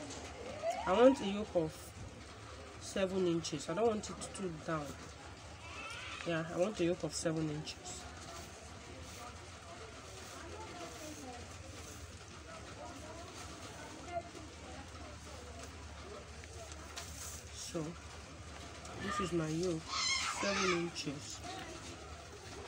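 Stiff paper rustles softly under hands.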